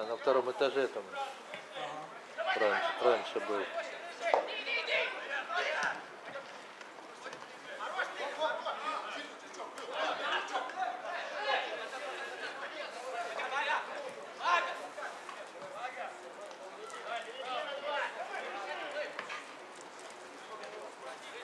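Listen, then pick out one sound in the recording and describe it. Men shout and call to each other across an open field.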